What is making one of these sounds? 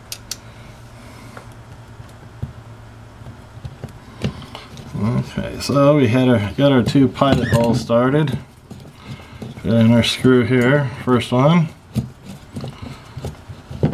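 A screwdriver turns a screw into a wall, creaking softly.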